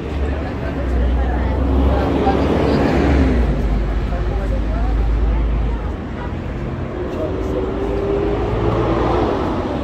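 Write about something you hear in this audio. Footsteps scuff on a paved sidewalk.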